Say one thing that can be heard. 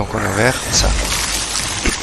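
Sparks crackle and fizz.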